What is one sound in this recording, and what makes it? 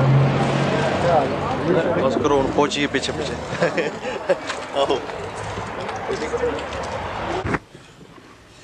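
Men talk loudly in an outdoor crowd.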